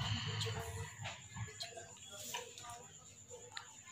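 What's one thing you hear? A fork scrapes against a plate.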